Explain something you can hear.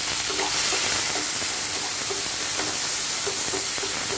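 A spatula scrapes and stirs in a pan.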